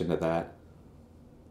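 A man speaks briefly into a nearby microphone.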